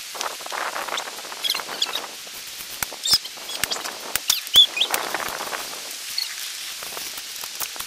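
A pickaxe strikes the ground with dull thuds.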